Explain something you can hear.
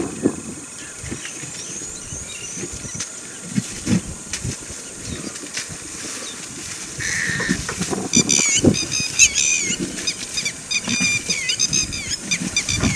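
An elephant tears up grass and thumps it against the ground.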